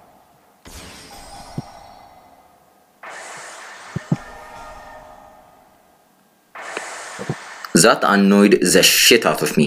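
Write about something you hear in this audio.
A video game plays swooshing sound effects in short bursts.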